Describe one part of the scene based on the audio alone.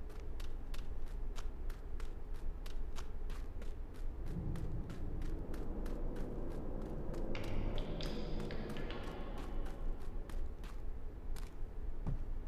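Footsteps patter quickly and evenly on a hard floor.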